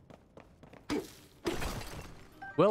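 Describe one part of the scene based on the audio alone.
A heavy hammer smashes a rock with a loud crash.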